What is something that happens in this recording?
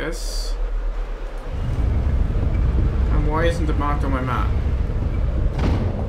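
A heavy metal door slides shut with a rumble.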